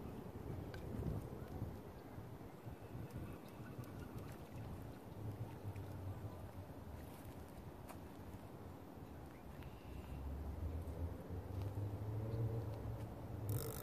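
A fishing reel whirs and clicks as its line is wound in.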